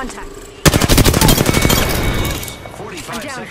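A video game rifle fires rapid automatic bursts.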